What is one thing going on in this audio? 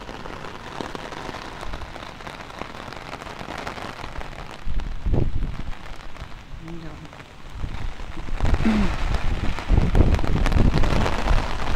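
Heavy rain pours down outdoors, splashing on pavement.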